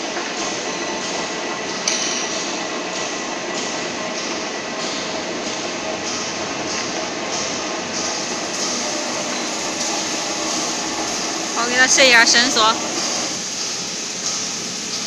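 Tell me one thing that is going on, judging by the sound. A machine's motor hums steadily.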